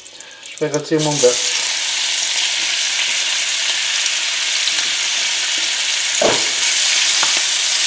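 Meat sizzles loudly in hot oil in a pan.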